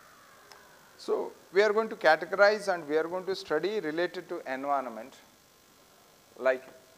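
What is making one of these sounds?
A middle-aged man lectures calmly into a clip-on microphone.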